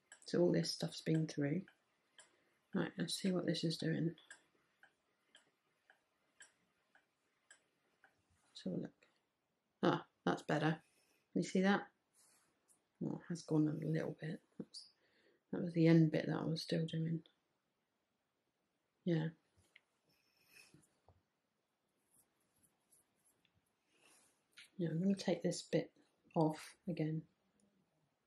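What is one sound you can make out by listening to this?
A woman talks calmly close by, in short bursts with pauses.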